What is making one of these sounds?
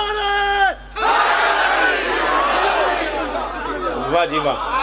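A crowd of men chants and cries out loudly together.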